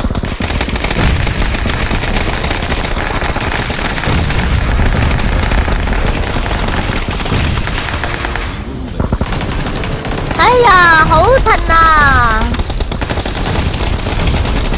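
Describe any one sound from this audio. Smoke grenades hiss loudly as they release smoke.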